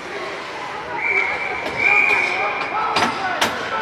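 A referee's whistle blows in two short bursts.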